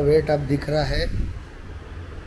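A man speaks close to the microphone.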